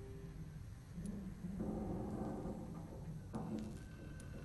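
Soft interface clicks sound as a menu selection changes.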